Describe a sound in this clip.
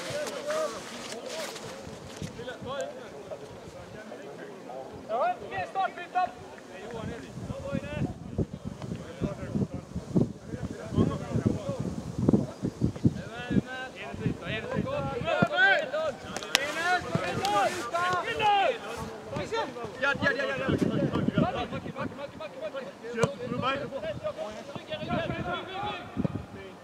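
A crowd of adult men and women talk and call out nearby outdoors.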